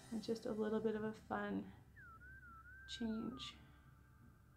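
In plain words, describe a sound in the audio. A woman talks close to the microphone with animation.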